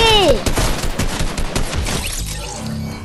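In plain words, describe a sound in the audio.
Rapid gunfire rings out.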